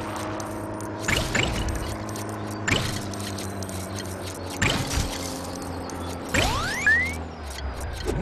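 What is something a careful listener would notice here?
Small coins clink and chime as they are picked up.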